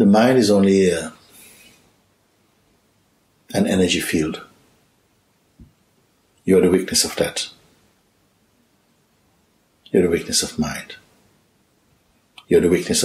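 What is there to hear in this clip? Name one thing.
A middle-aged man speaks calmly and slowly, close by, with long pauses.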